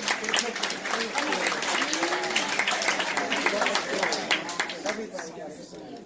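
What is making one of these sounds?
A man claps his hands in applause.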